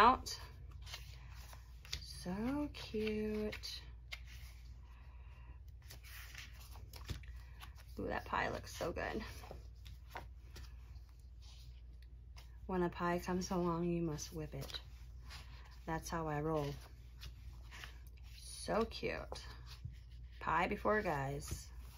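Sheets of paper rustle and flap as they are handled.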